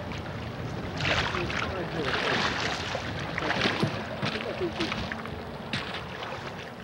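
Water splashes and sloshes as two men wade through a stream.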